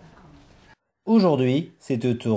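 A young woman exclaims loudly nearby.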